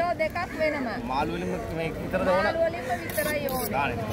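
A knife scrapes against a fish's skin.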